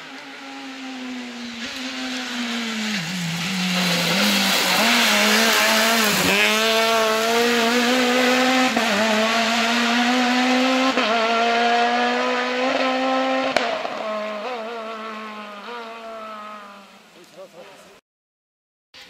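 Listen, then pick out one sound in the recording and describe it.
A rally car engine roars loudly as the car races closer, revving and changing gear.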